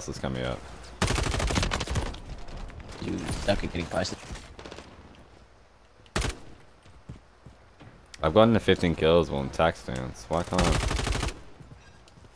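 Rapid bursts of gunfire ring out close by.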